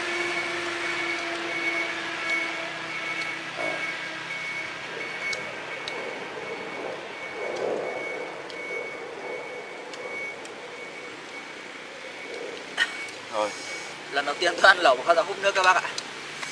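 A pot of soup simmers and bubbles softly.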